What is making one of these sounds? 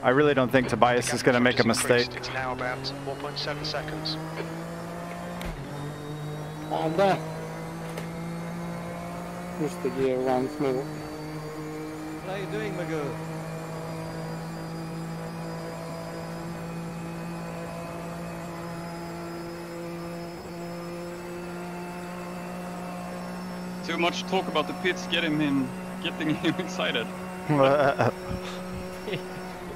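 A race car engine hums steadily, rising slowly in pitch as the car speeds up.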